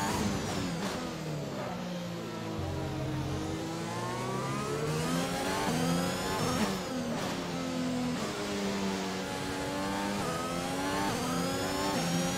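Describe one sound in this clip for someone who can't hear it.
A racing car engine revs up and down as gears shift.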